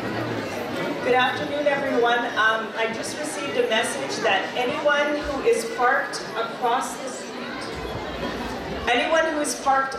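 A woman speaks with animation through a microphone and loudspeakers.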